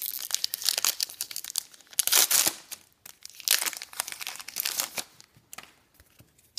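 A foil wrapper crinkles and tears loudly.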